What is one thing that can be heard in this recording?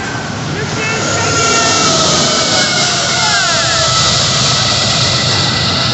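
A locomotive engine roars as it passes.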